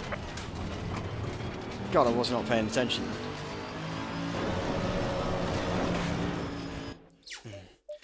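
A racing car engine roars and revs up through the gears.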